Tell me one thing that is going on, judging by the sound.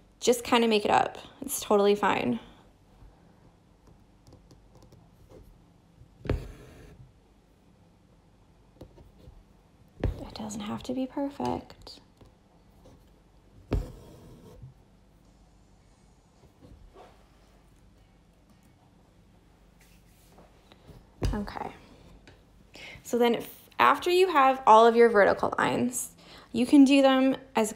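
A needle and thread are pulled through taut fabric.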